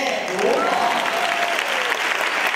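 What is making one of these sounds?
An audience claps hands together in a large hall.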